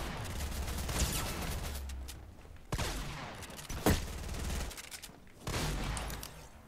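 Gunfire from a video game rattles in quick bursts.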